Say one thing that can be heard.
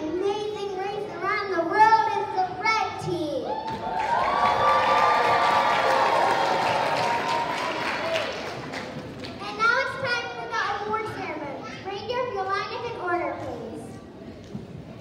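A children's choir sings in a large echoing hall.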